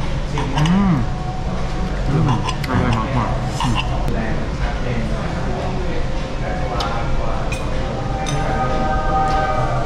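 A second young man laughs and talks close by.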